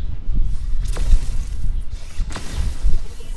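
A loud explosion bursts with a roar.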